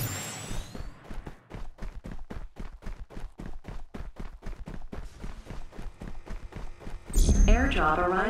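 Quick footsteps patter on grassy ground.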